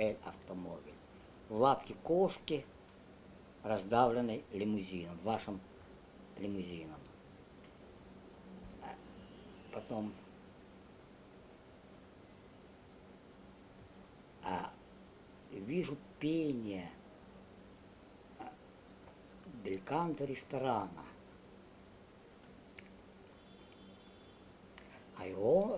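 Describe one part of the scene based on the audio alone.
An elderly man speaks calmly and slowly nearby, with long pauses.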